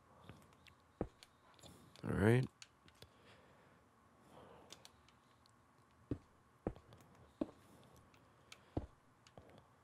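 Stone blocks are set down with short, dull knocks.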